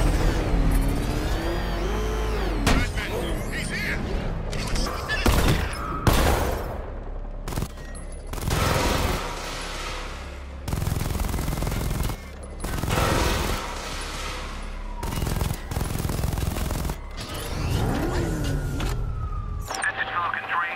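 A heavy vehicle engine rumbles and revs.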